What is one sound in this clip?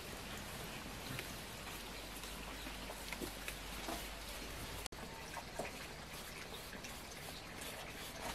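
A paintbrush dabs and brushes against rubber.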